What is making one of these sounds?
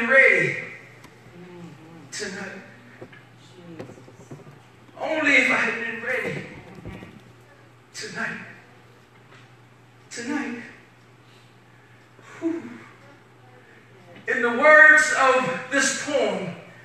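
A woman speaks with feeling in bursts into a microphone, heard through loudspeakers in an echoing hall.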